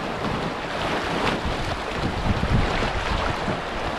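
Water splashes against a canoe's hull.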